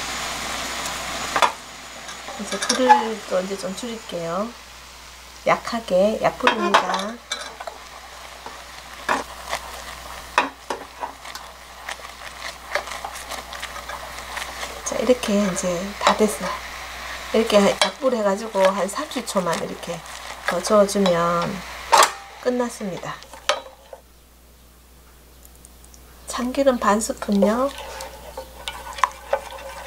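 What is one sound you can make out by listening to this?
A wooden spoon scrapes and knocks against a metal pot.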